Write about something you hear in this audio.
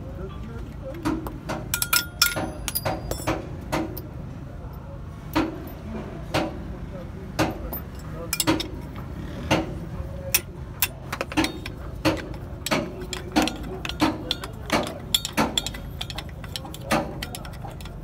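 A metal wrench clicks and clanks against bolts as it is turned.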